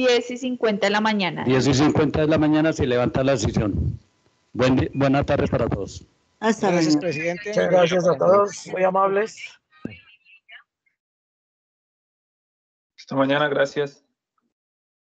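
An older man speaks close to the microphone through an online call.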